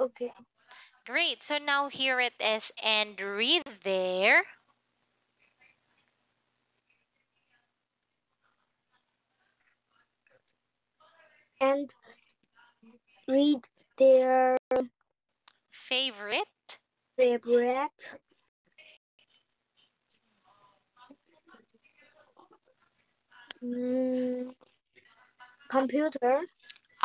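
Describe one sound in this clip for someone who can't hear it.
A young woman speaks clearly and slowly over an online call, like a teacher.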